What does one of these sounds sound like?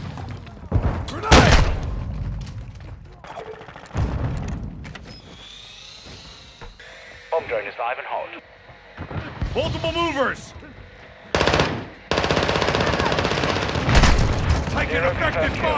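A gun fires several shots.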